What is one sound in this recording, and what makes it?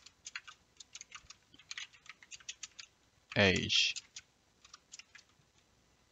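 Keys click quickly on a computer keyboard.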